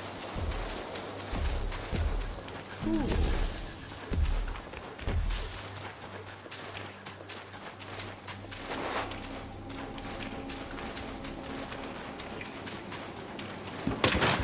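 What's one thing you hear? Footsteps run quickly over soft ground.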